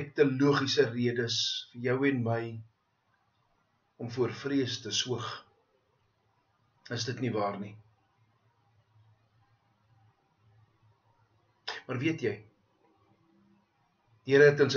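A middle-aged man speaks calmly in bursts, close to a microphone.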